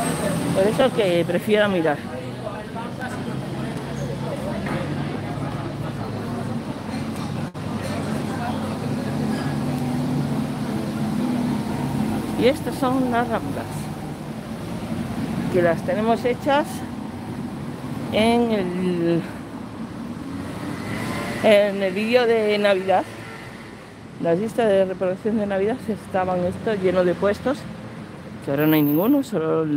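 Traffic rumbles steadily along a street.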